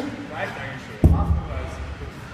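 A heavy tyre thuds down onto a padded floor.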